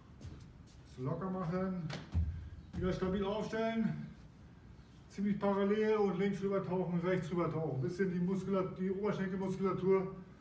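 A middle-aged man speaks, instructing.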